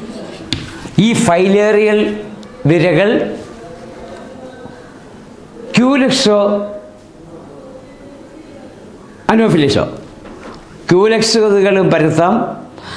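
An elderly man speaks calmly and clearly, in bursts with pauses, close by.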